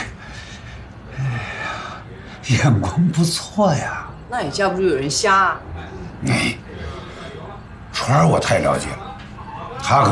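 An older man speaks warmly nearby.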